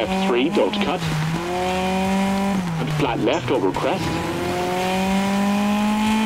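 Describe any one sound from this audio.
A rally car engine roars steadily, dipping briefly as it shifts gears.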